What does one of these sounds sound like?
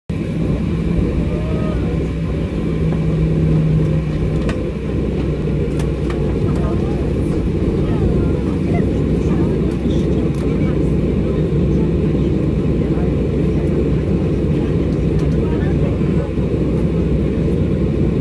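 Jet engines roar steadily, heard from inside an aircraft cabin.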